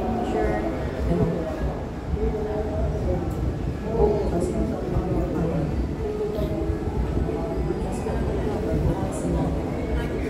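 A young woman sings into a microphone through a small amplifier.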